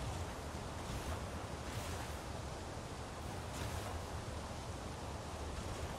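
Soft footsteps crunch on grass and dirt.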